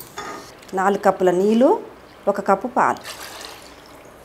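Milk pours and splashes into a pot of water.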